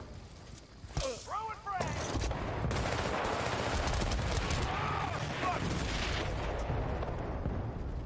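Gunshots fire in rapid bursts nearby.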